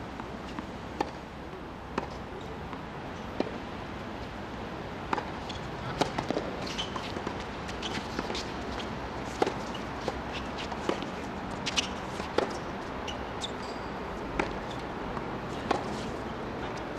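Tennis balls are struck with rackets in a rally, with sharp pops.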